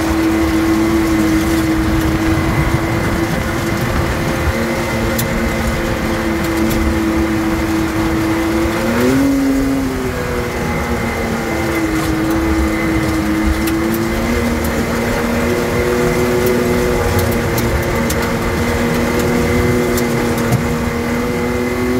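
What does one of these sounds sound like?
Tyres crunch and rumble over a gravel track.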